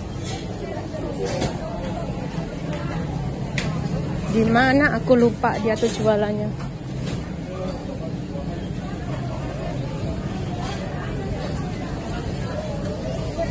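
A crowd murmurs steadily in a large indoor space.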